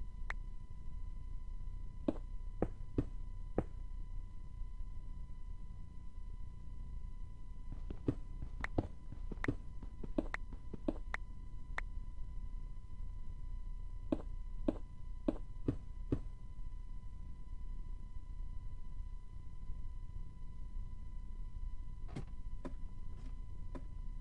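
Stone blocks are set down with short, sharp clicks.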